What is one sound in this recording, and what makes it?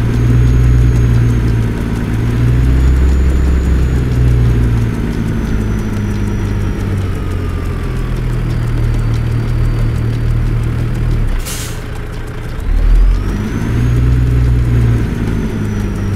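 Tyres crunch over a rough gravel road.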